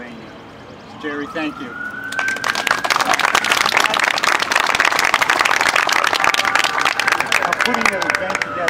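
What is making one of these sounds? Bagpipes begin to play.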